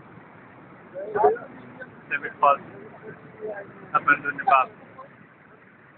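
Young adults talk and call out outdoors at a distance.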